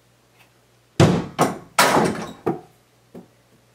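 A ball bangs against a door-mounted backboard and rim.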